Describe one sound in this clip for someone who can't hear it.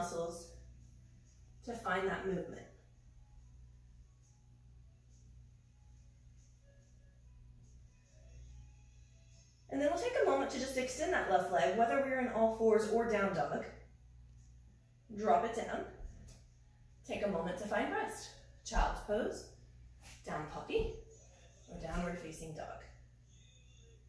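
A woman speaks calmly in short bursts of instruction, close by.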